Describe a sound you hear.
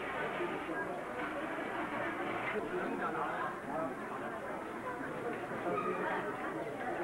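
A crowd of men talk and murmur together nearby.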